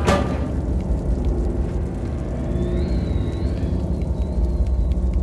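Light footsteps patter on a metal pipe.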